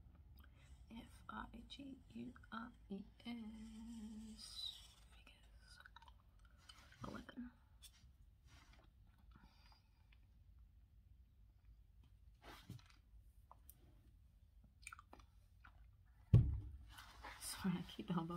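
A young woman whispers softly close by.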